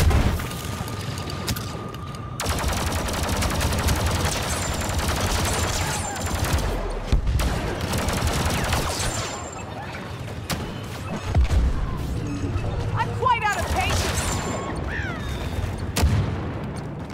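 Laser blasters fire in rapid bursts of zaps.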